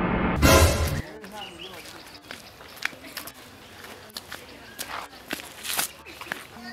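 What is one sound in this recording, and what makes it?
Footsteps crunch on dry dirt outdoors.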